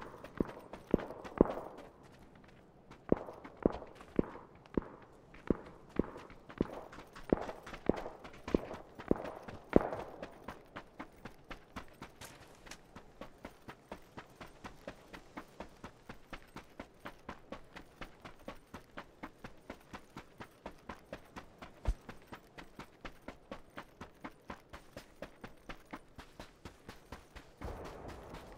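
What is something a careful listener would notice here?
Footsteps thud quickly and steadily on dirt and sand.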